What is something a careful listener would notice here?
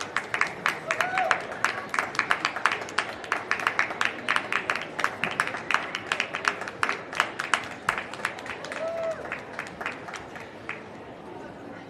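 An audience claps rapidly in a large echoing hall.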